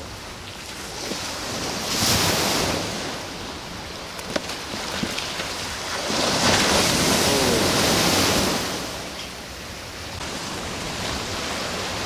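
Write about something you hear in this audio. A board skims across the water with a hiss.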